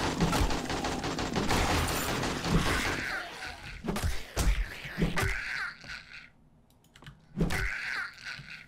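A club thuds into a zombie in heavy blows.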